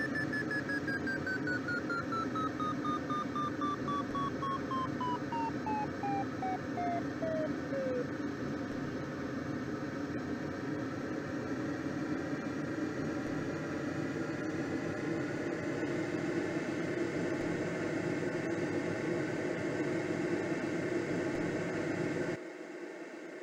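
Wind rushes steadily past a gliding aircraft's canopy.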